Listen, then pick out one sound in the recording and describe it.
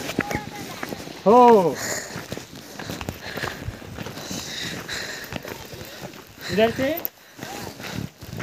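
Footsteps crunch on dry grass and dirt.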